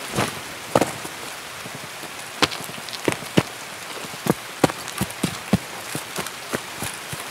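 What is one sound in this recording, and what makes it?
Footsteps tread quickly over dirt and grass.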